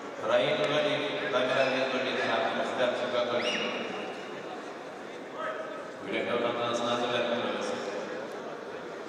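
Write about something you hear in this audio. A man speaks loudly, echoing in a large hall.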